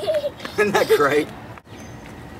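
A man speaks cheerfully up close.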